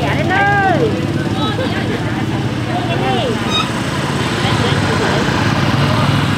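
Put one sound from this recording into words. A motorbike engine idles close by.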